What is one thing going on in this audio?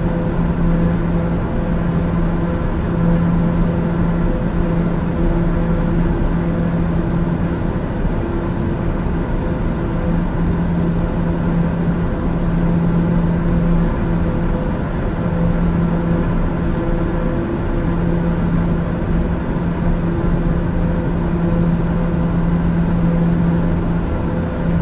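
A single-engine turboprop drones in cruise, heard from the cockpit.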